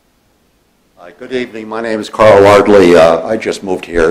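An elderly man speaks clearly into a microphone.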